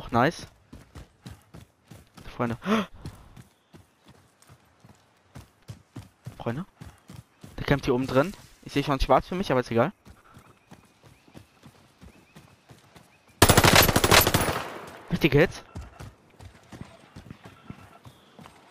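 Footsteps thud quickly over grass and dirt.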